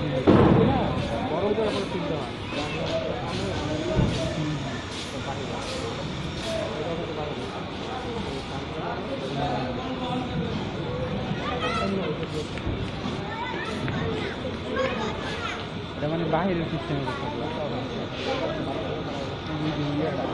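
Cattle moo and low close by.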